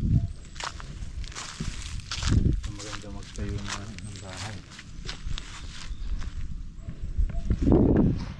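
A middle-aged man speaks calmly outdoors, close by.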